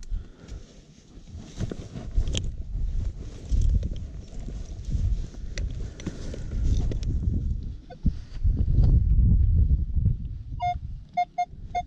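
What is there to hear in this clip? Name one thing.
A shovel digs into dry soil.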